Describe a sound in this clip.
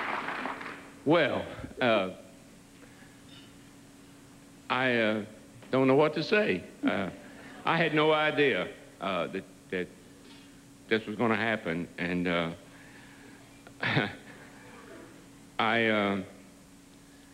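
A man speaks slowly into a microphone, pausing often.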